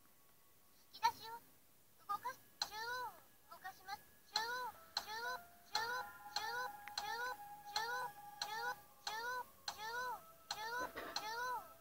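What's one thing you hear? Electronic game sound effects chirp and swoop over and over from a small speaker.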